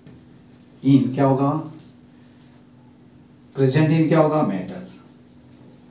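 A man speaks calmly and clearly, as if explaining, close by.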